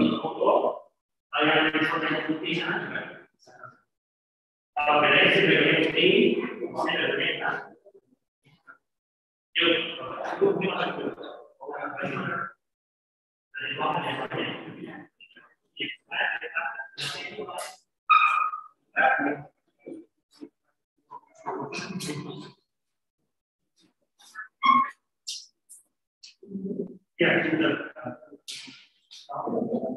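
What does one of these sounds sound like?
A man speaks with animation through a microphone over an online call.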